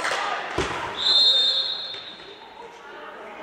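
A referee blows a short, sharp whistle in a large echoing hall.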